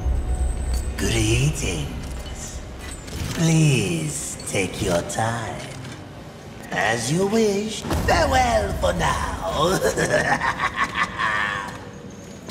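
A man speaks in a deep, growling voice, close by.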